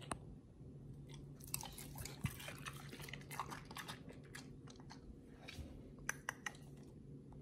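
A dog sniffs at food close by.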